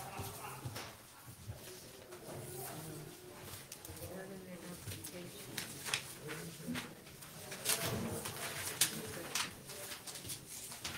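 Papers rustle and shuffle nearby.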